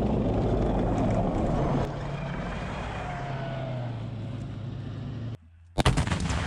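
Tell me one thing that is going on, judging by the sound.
A tank engine rumbles and clanks close by.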